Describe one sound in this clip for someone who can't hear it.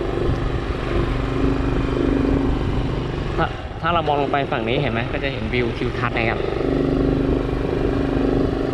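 Wind rumbles against the rider.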